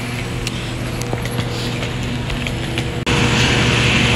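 Suitcase wheels roll and rattle over pavement.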